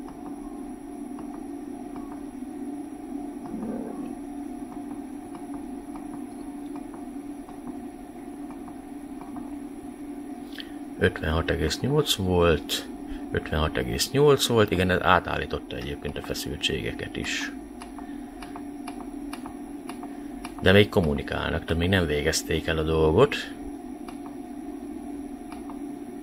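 Buttons click softly as they are pressed.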